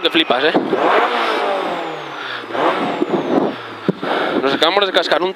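A rally car engine roars and revs inside the cabin.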